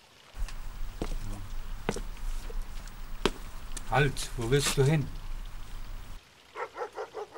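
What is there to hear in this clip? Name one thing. Footsteps thud down wooden steps.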